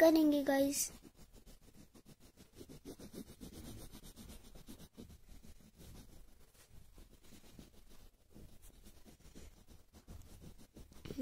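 A crayon scratches softly on paper.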